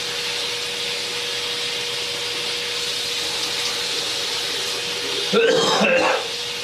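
A man splashes water on his face.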